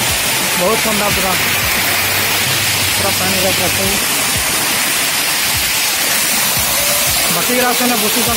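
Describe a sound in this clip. A waterfall splashes and roars loudly over rocks close by.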